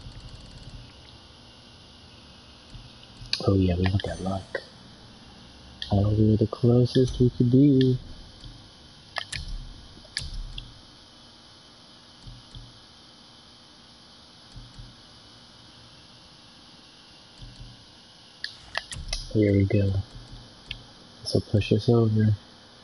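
Short soft clicks sound as a game menu selection moves.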